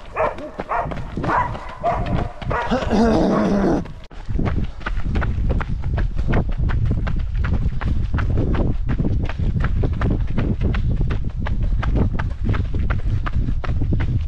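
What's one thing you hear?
Running footsteps crunch rhythmically on a gravel track.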